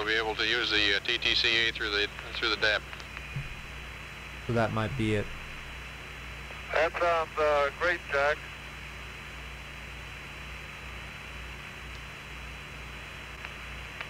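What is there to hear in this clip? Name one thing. A small propeller plane's engine drones steadily.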